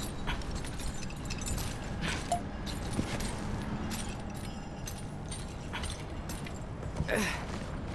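A metal chain clinks and rattles as someone climbs it.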